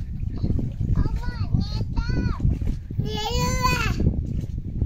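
A toddler babbles and cries out loudly close by.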